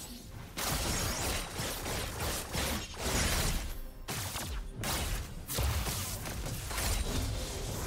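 Video game spell effects whoosh and crackle during a battle.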